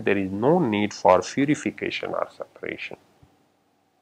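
A middle-aged man lectures calmly and clearly into a microphone.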